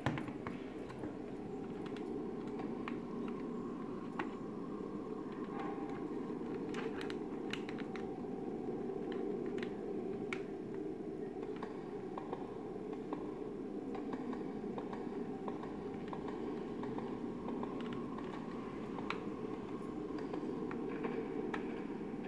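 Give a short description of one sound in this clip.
A steady low rumbling sound plays through a television speaker.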